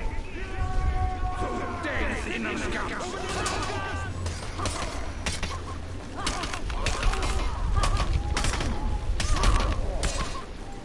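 Warriors grunt and shout as they fight.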